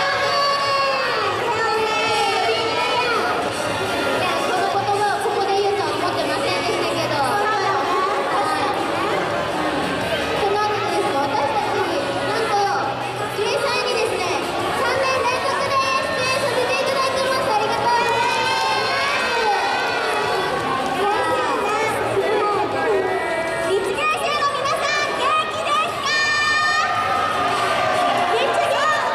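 A group of young women sing together into microphones in a large echoing hall.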